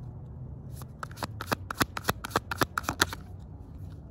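Playing cards riffle and snap as they are shuffled close by.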